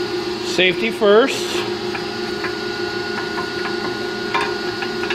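A wrench clinks against metal fittings.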